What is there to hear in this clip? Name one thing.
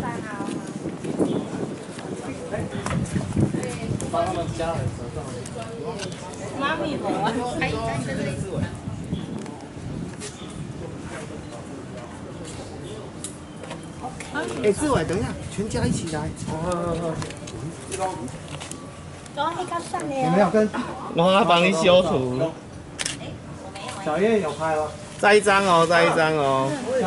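Young women talk and laugh together nearby.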